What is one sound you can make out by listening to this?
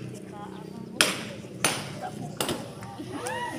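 Firecrackers bang loudly several times outdoors.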